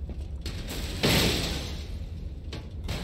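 A wooden cabinet door swings open with a creak.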